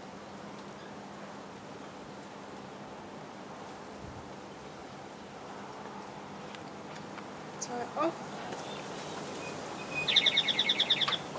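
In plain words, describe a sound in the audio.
Cord rustles softly as it is wrapped tightly around a wooden stick.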